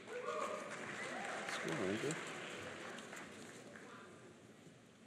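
A man speaks into a microphone, his voice echoing through a large hall.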